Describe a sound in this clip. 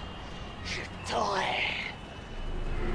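A man speaks angrily close by.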